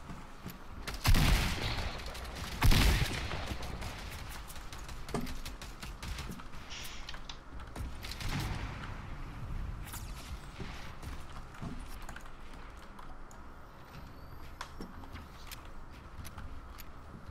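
Gunshots ring out in a video game.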